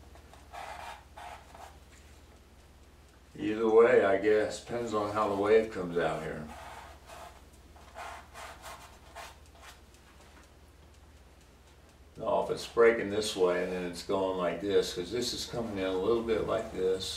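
A brush scrapes softly across canvas.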